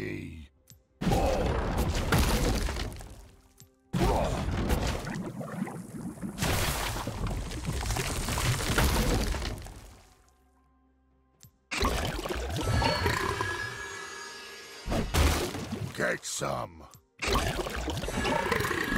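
Magic spell effects whoosh and burst in short loud bursts.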